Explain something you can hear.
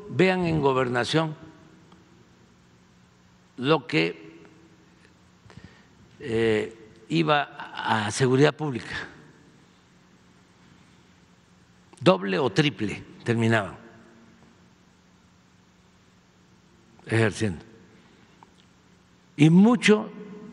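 An elderly man speaks slowly through a microphone, with long pauses.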